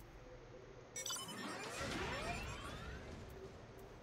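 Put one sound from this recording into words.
A shimmering electronic chime sweeps down in pitch.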